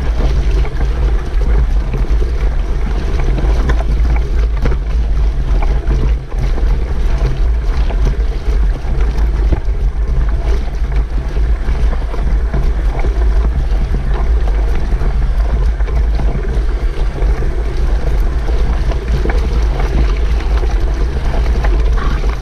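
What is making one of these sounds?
A motorcycle engine roars steadily, close by.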